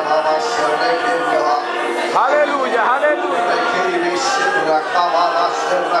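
A man preaches loudly into a microphone, heard through loudspeakers in an echoing hall.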